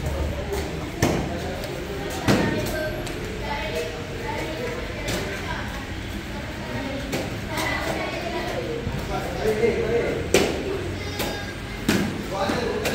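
A foot kicks a padded target with sharp slaps.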